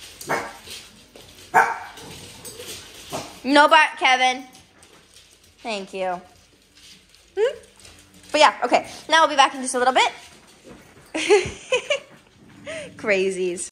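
Several dogs bark and yelp loudly close by.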